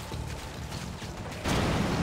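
A machine gun fires short bursts.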